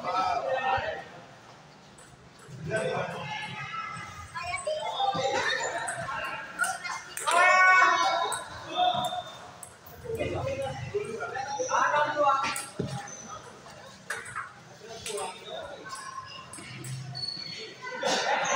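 Men talk and call out in an echoing hall.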